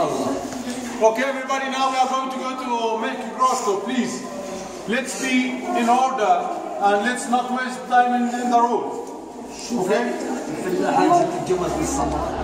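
A middle-aged man sings loudly, his voice echoing around a stone hall.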